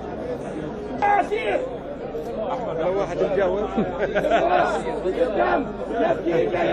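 A man shouts slogans loudly nearby.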